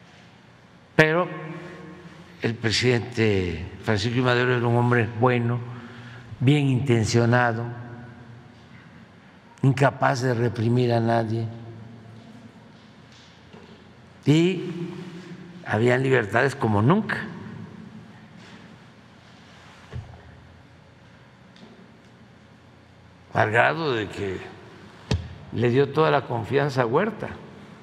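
An elderly man speaks with animation into a microphone, in a large echoing hall.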